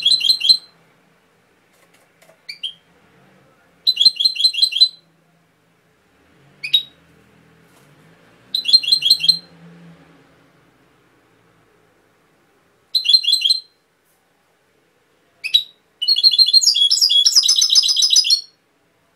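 A small bird sings close by in short bursts of bright, rapid twittering chirps.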